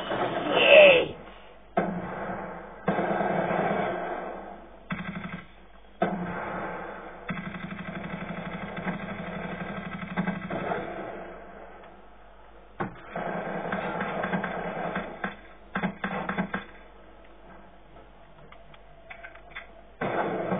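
Gunfire and explosions from a video game play loudly through a television speaker, in bursts.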